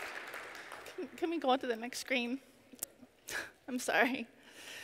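A woman speaks with emotion through a microphone in a large hall.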